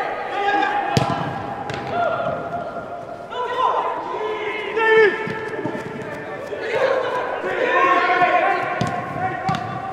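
A ball is kicked hard in a large echoing hall.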